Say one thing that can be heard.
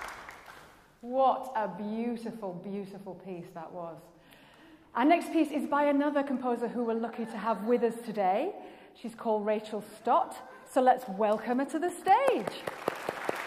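A young woman speaks with animation in a large hall.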